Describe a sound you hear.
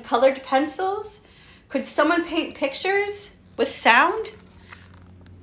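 A young woman reads aloud with animation, close by.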